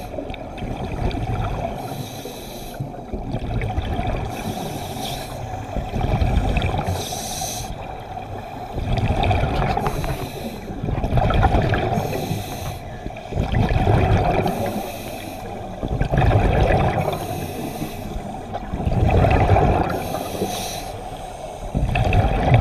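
A scuba diver breathes in through a regulator underwater.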